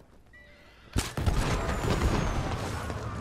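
A fire bursts with a loud whoosh and crackles.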